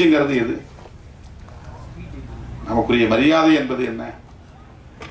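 A middle-aged man speaks slowly and forcefully into a microphone, heard through loudspeakers in a large room.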